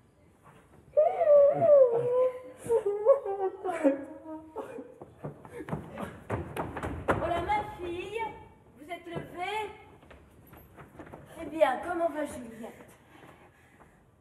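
A woman sings loudly and dramatically in a large echoing hall.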